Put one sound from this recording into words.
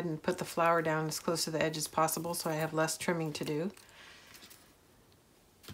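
Paper rustles as hands handle it.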